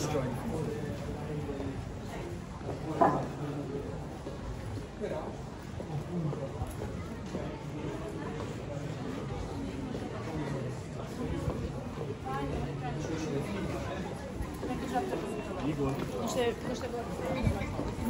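Footsteps tap on paving stones.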